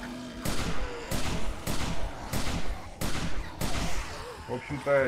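A gun fires a series of loud shots.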